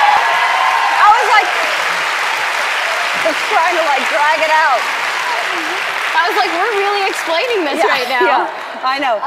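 A young woman laughs and talks excitedly.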